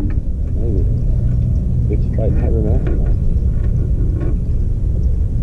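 A man speaks casually nearby, outdoors.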